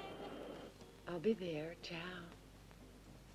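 A young woman speaks calmly into a phone, close by.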